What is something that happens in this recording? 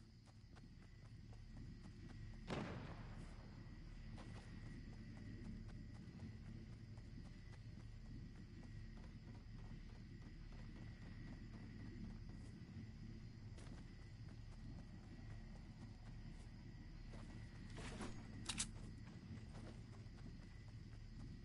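Footsteps patter quickly over grass and wooden stairs.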